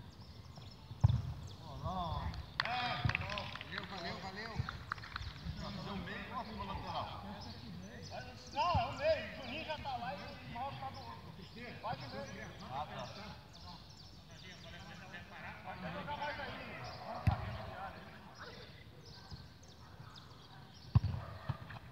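A football is kicked with a dull thump outdoors.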